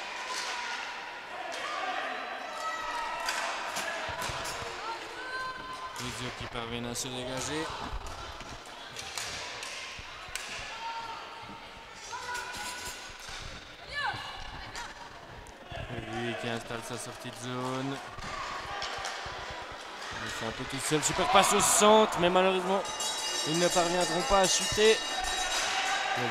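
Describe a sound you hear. Hockey sticks clack against a ball and against each other.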